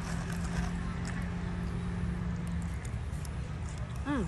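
A young woman chews food with her mouth full.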